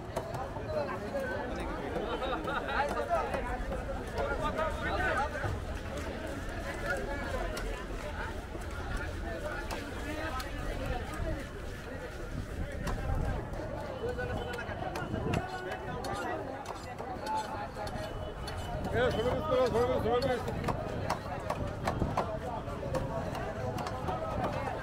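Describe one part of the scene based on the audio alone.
A knife scrapes and chops at a fish.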